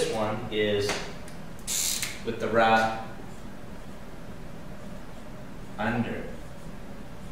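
A middle-aged man speaks calmly and clearly, close by.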